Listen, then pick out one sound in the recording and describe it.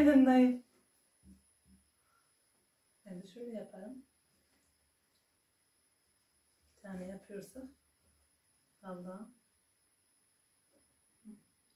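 A woman speaks calmly in short phrases nearby.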